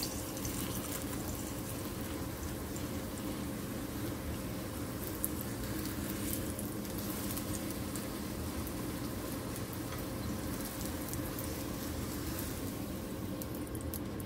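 A tortilla sizzles softly in a hot pan.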